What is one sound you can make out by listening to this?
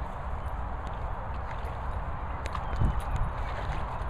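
A dog splashes in shallow water.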